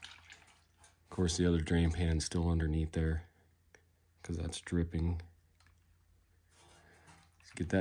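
Thick oil pours and splashes into a plastic pan.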